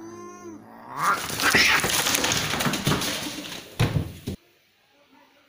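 Cats hiss and scuffle in a sudden fight.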